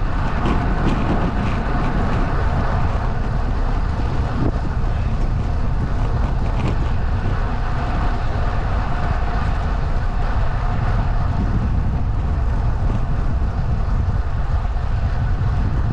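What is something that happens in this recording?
Wind rushes and buffets outdoors.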